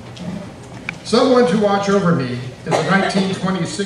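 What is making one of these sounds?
An elderly man speaks calmly into a microphone over loudspeakers.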